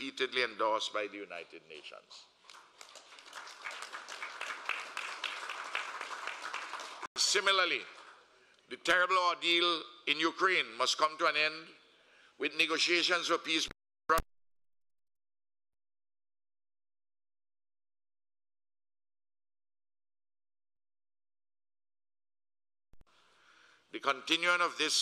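An elderly man speaks calmly and formally into a microphone.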